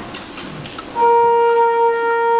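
A wind band plays a long, steady tuning note.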